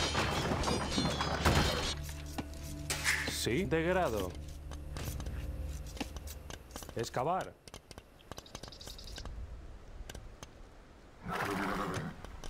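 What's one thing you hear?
Swords clash in a small fight.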